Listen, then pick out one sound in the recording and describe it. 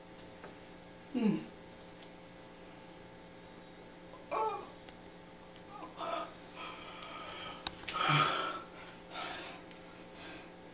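A man makes short, strained voice sounds close by.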